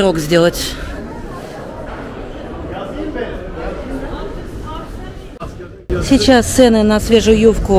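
Shoppers murmur and chatter in the background indoors.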